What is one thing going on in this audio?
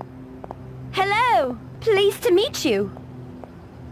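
A young woman's voice exclaims briefly.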